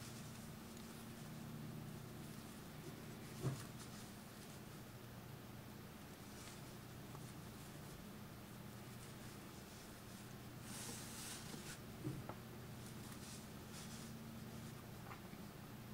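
A crochet hook and yarn rustle softly as stitches are worked.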